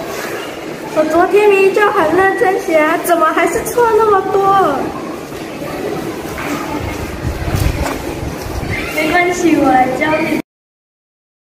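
A young girl speaks close by with a complaining tone.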